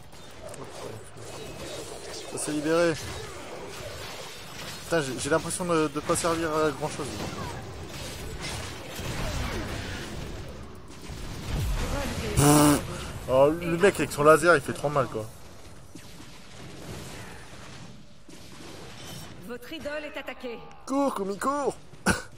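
Game combat effects crackle and boom with blasts and zaps.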